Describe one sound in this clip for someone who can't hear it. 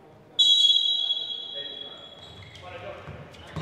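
A referee's whistle blows one long, shrill blast.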